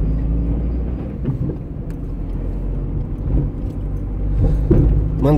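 A car engine hums steadily from inside the car as it drives along a road.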